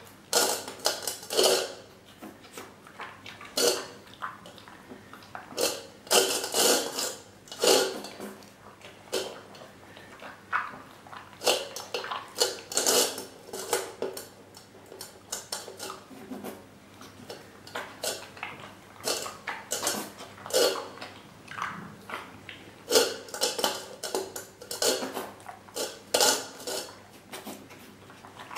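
A metal bowl clinks and scrapes on a tiled floor.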